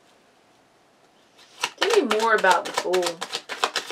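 Playing cards rustle and slap as they are shuffled by hand.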